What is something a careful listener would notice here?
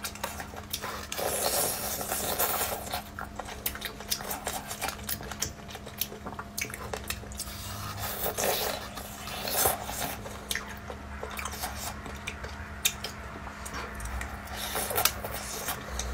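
A young woman bites into crispy fried chicken close to a microphone.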